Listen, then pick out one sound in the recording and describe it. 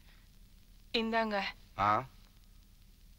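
A woman speaks briefly in a quiet room.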